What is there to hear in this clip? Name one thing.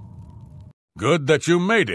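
A man speaks calmly and gruffly.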